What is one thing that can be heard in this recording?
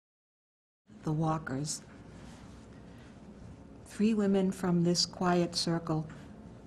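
An elderly woman speaks calmly and close to a microphone.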